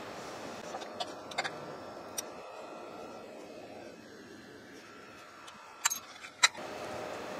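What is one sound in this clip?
Metal tools clink and tap as they are handled.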